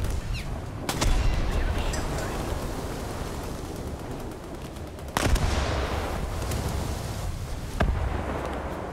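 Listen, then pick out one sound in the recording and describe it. Heavy explosions boom and echo.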